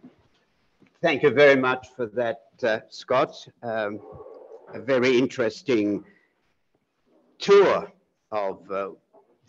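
A man talks calmly at close range.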